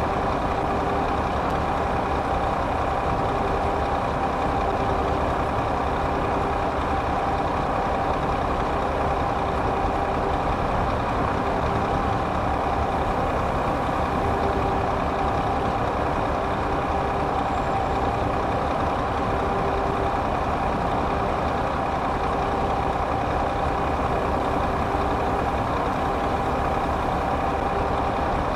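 A truck engine hums steadily at cruising speed.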